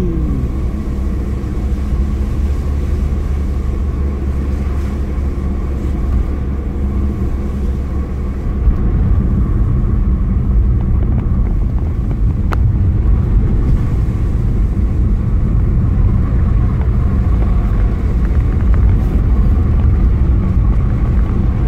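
Tyres rumble low over a wet road.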